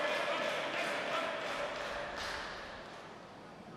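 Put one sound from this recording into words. A crowd cheers and claps in a large echoing hall.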